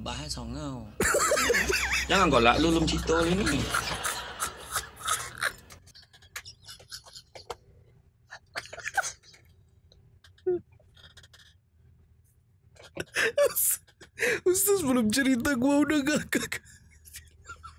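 A man laughs loudly and shrieks close to a microphone.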